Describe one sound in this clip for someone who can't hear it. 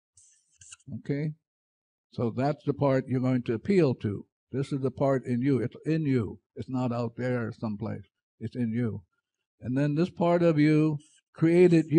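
An elderly man speaks with animation through a headset microphone.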